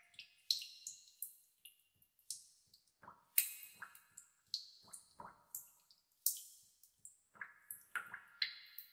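Water drops fall into water with bright, ringing plinks at an uneven pace.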